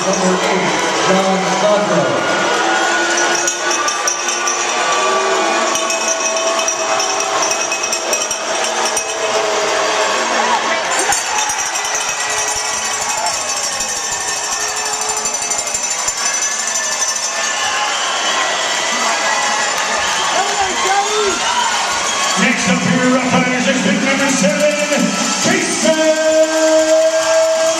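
A crowd chatters in a large echoing arena.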